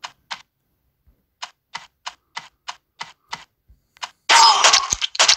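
Quick electronic blips tick in an even rhythm.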